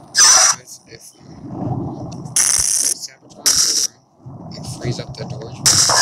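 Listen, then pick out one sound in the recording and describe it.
Short electronic blips sound as game wires snap into place.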